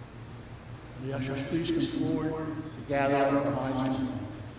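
An older man sings slowly into a microphone.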